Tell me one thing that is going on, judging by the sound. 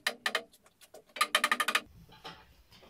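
A mallet taps on wooden boards.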